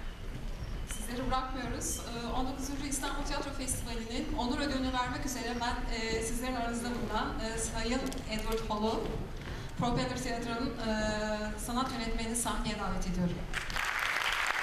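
A woman speaks calmly through a microphone in a large echoing hall.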